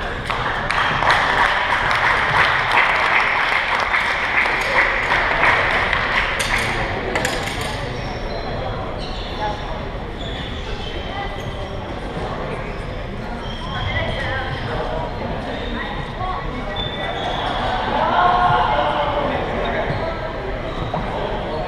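Shuttlecocks are struck with rackets in quick taps.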